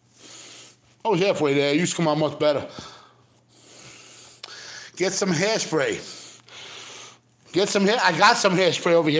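A middle-aged man speaks loudly and with animation close by.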